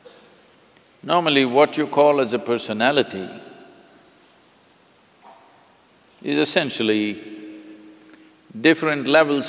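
An elderly man speaks calmly and thoughtfully into a microphone, with pauses.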